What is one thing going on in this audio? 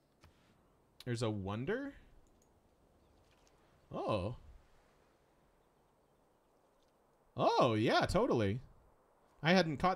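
A man talks calmly and close into a microphone, in short bursts.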